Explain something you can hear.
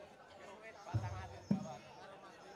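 A drum is struck on stage.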